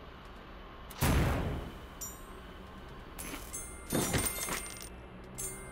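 A loud burst of game sound effects plays as a treasure chest opens.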